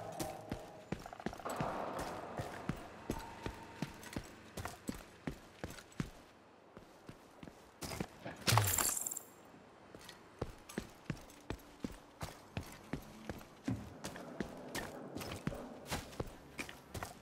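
Footsteps walk steadily on hard pavement.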